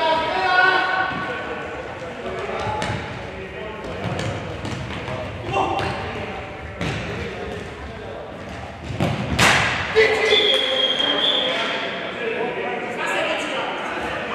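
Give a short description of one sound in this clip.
A ball thuds as players kick it in a large echoing hall.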